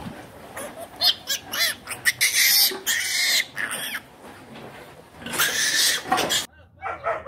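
Piglets squeal loudly and shrilly.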